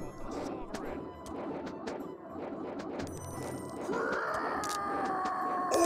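Swords clash and clang in a small battle.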